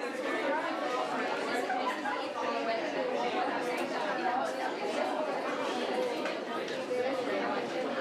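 A crowd of men and women chatter and murmur all around in a room with some echo.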